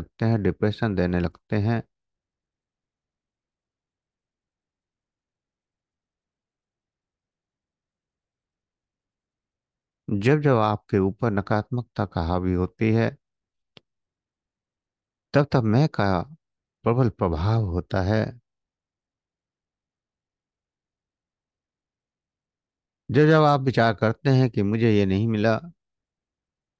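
An older man speaks calmly over an online call, in short bursts with long pauses.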